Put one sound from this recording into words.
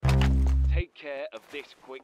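A handgun fires in a video game.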